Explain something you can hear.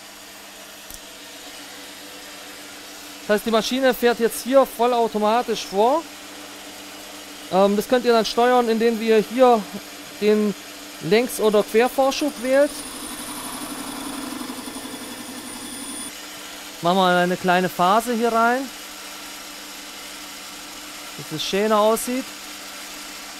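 A metal lathe hums steadily.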